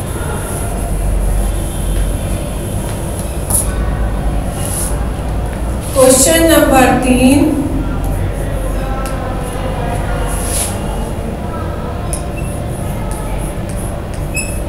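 A woman speaks calmly, as if teaching.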